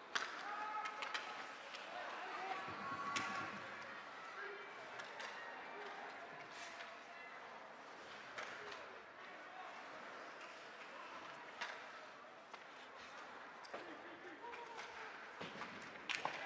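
Skate blades scrape and hiss on ice.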